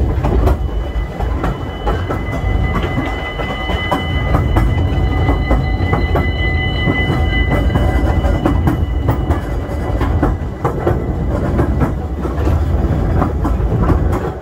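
A small open train rumbles and rattles along its track.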